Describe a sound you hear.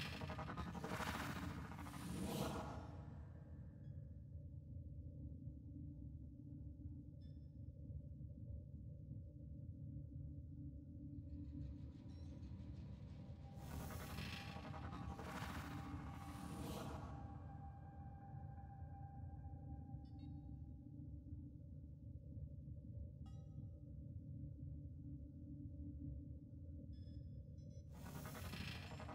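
A bow twangs as an arrow is loosed with a whoosh.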